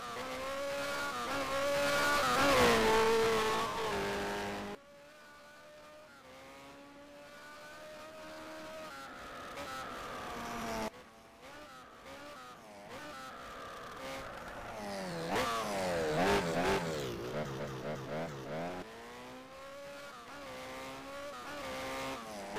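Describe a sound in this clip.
A car engine revs up and down as it races along a winding road.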